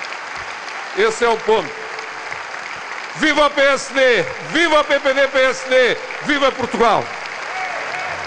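A man speaks forcefully through a loudspeaker in a large echoing hall.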